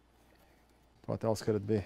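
A man speaks calmly into a close headset microphone.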